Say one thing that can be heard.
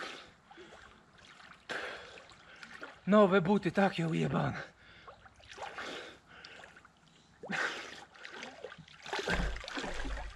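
Water splashes and ripples as someone swims close by.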